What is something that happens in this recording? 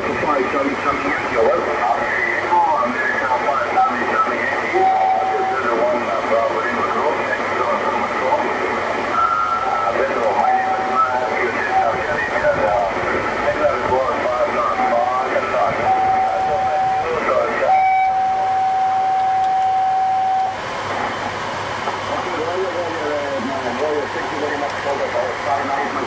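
A radio receiver hisses and crackles with warbling, garbled signals.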